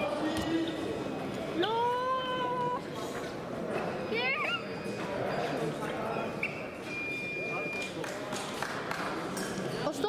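Shoes squeak and tap on a fencing strip in a large echoing hall.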